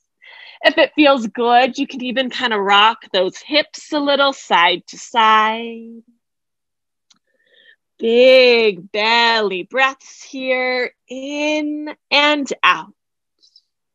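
A woman speaks calmly and softly into a close microphone, giving slow instructions with pauses.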